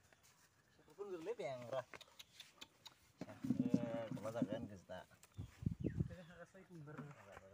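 Young men talk and call out to each other close by, outdoors.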